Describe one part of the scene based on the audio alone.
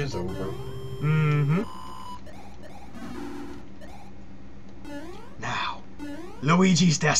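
Short rising electronic bleeps sound as a game character jumps.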